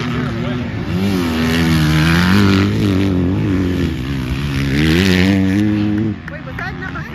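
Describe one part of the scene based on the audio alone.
A nearby dirt bike engine roars as it accelerates past.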